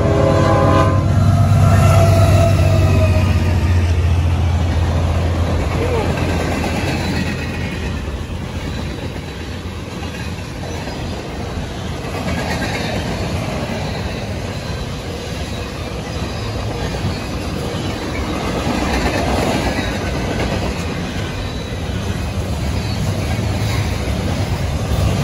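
Freight cars clatter and squeal along the rails.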